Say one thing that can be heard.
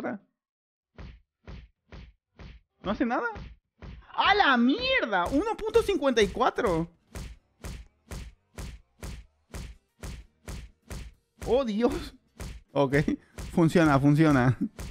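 Game punches thud in a quick, steady rhythm.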